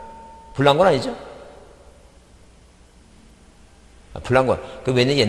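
A middle-aged man speaks in short bursts through a microphone.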